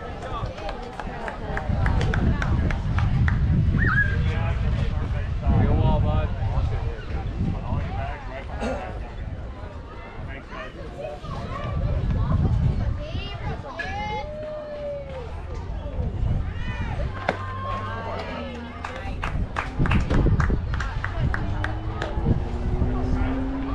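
Players and spectators call out and chatter at a distance outdoors.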